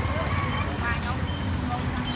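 Auto-rickshaw engines putter by on a busy street outdoors.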